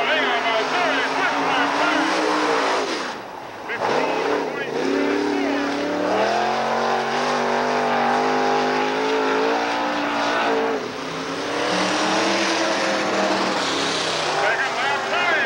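A race car engine roars loudly, revving up and down.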